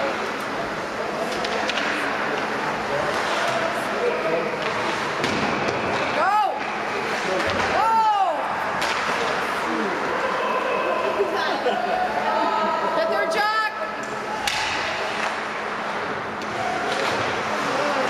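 Skates scrape across ice in a large echoing hall.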